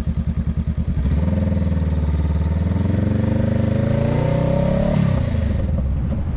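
A parallel-twin cruiser motorcycle accelerates, its engine rising in pitch before a gear change.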